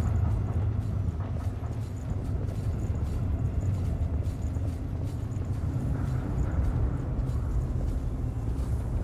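Footsteps tread on a hard stone surface.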